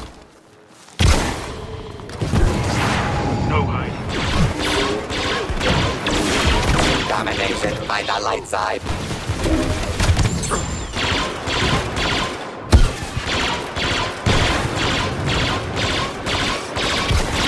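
Blasters fire in rapid bursts of shots.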